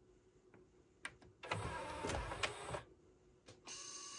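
A disc spins with a soft whir inside an open player.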